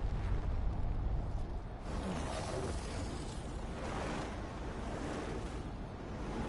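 Flames roar steadily.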